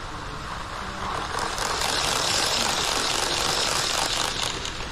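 A model train rumbles and clatters across a metal bridge overhead, growing louder as it comes near.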